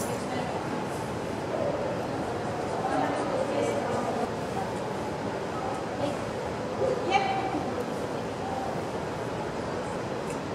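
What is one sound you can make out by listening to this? A woman speaks in a large echoing hall.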